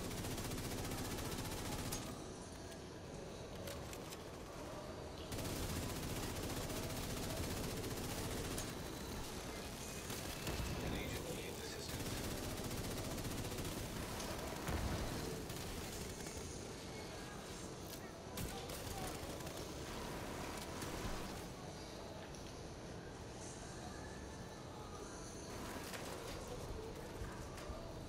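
Gunfire cracks and rattles in a video game.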